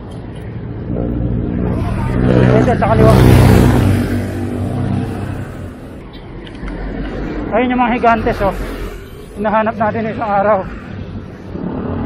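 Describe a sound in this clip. A motorcycle engine hums as it passes close by.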